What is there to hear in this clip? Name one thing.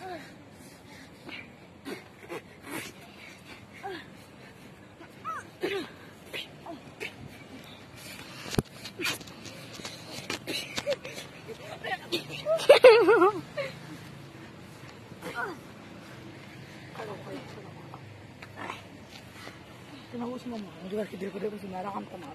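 Blows thud against a body on the grass.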